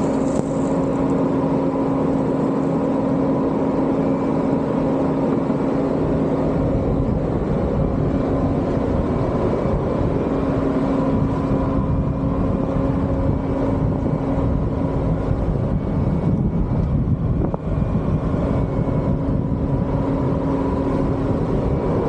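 A skid steer loader's diesel engine runs and revs close by.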